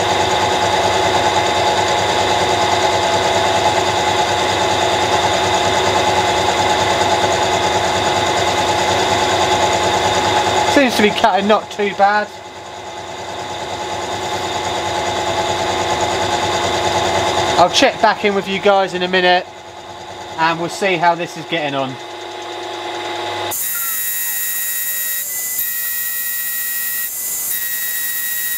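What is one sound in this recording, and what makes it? A cutter grinds against metal.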